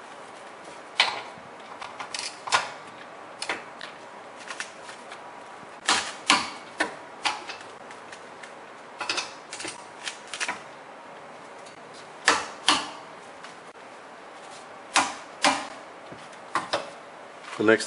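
A ratchet wrench clicks and knocks against metal parts.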